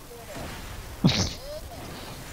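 A loud blast cracks once.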